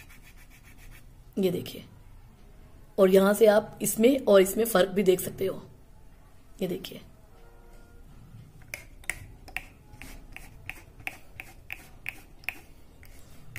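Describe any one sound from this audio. A cotton swab rubs against plastic switches in short strokes.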